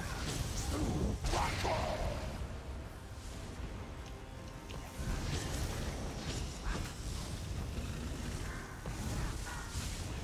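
Lightning crackles and snaps.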